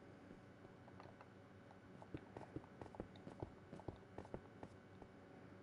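Stone blocks knock softly as they are placed one after another.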